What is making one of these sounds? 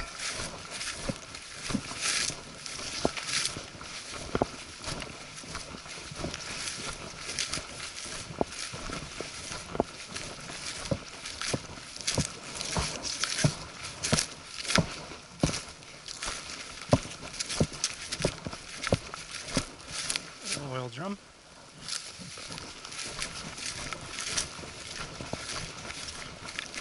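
Footsteps crunch and rustle through dense undergrowth close by.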